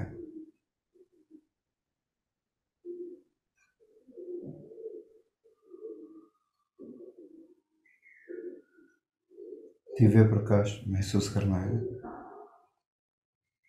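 An elderly man speaks slowly and calmly in a soft voice, close by.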